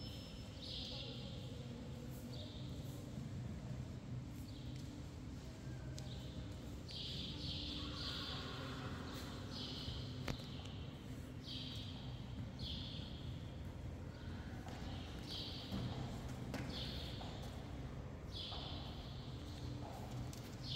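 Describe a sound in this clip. A horse's hooves thud softly on sand in a large hall.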